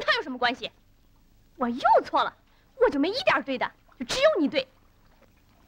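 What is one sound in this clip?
A young boy speaks in short, urgent bursts close by.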